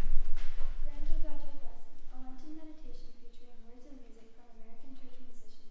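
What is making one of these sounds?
A young girl speaks calmly into a microphone, heard through loudspeakers in an echoing room.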